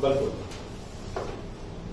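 A man speaks briefly, close by.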